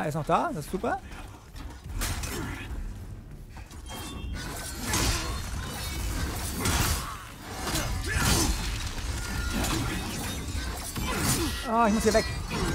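Metal blades clash and swish.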